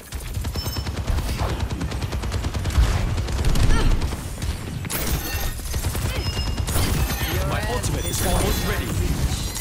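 Guns fire in rapid bursts during a shootout.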